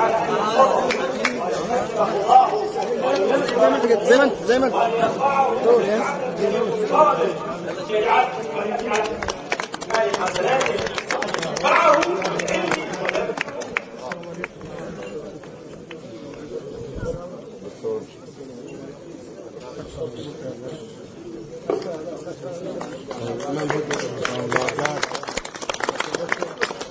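A crowd of men talks and chatters loudly all around, outdoors.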